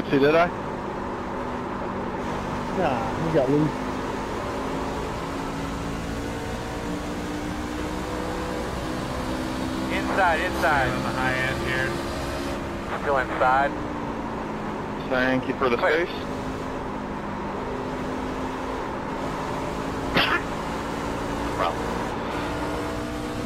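A race car engine drones steadily at high speed.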